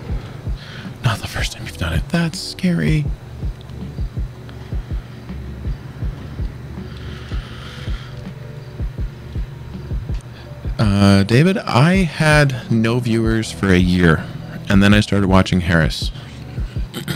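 A man speaks casually and close into a microphone.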